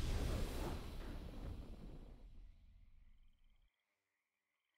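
A triumphant game fanfare swells and fades away.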